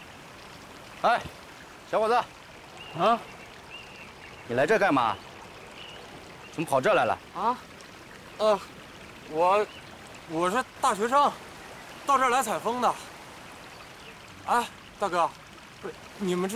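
A young man speaks in distress, close by.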